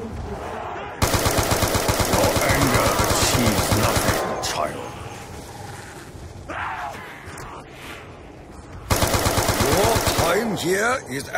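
A rapid-firing gun shoots in quick bursts.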